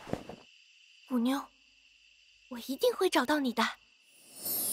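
A young girl speaks quietly.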